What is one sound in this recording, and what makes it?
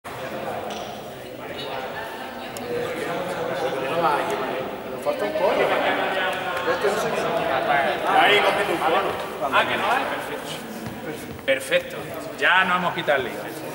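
A man speaks loudly to a group in a large echoing hall.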